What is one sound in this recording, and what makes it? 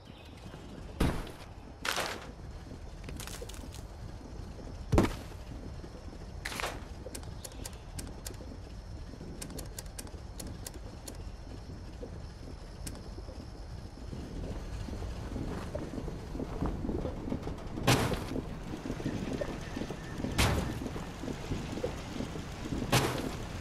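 Short sharp clicks and thuds sound now and then as items are picked and placed.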